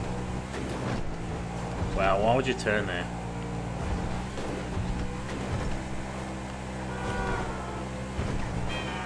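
A sports car engine roars at speed.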